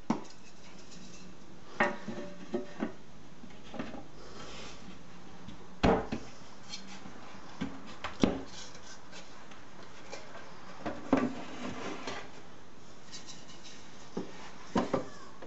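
Wooden strips knock and tap against a wooden surface.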